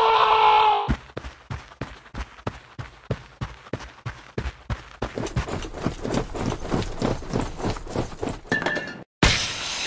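Footsteps run quickly.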